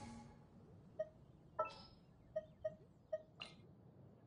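Menu chimes blip in quick succession.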